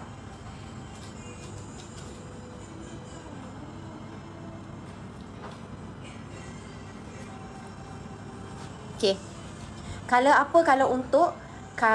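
Fabric rustles as a scarf is handled.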